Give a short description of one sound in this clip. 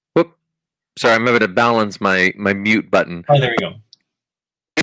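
A man speaks cheerfully over an online call.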